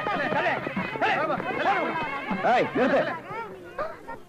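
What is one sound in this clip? A crowd of men shouts and clamours excitedly close by.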